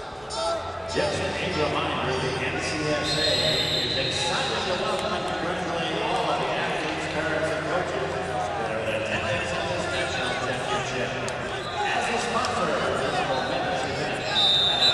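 A crowd cheers and shouts loudly.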